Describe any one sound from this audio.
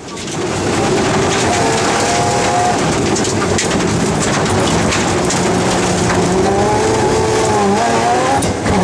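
Stones and snow clatter against the underside of the car.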